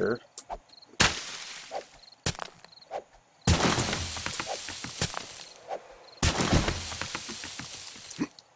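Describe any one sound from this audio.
Leafy plants rustle and crackle loudly as they are torn apart.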